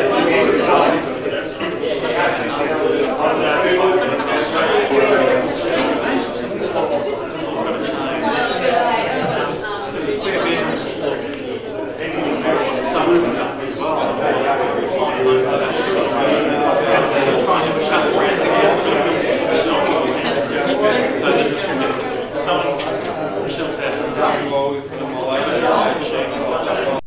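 Many adults chatter at once in a room, a babble of men's and women's voices close by.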